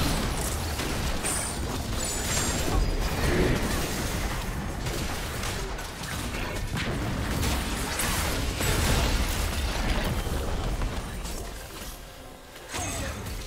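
Magic spell effects crackle and burst in a fast, busy fight.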